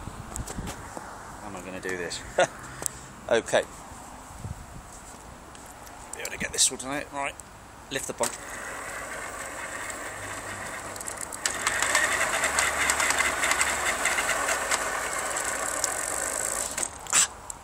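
Bicycle tyres roll over asphalt.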